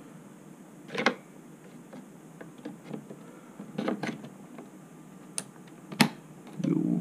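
A memory module clicks into a motherboard slot.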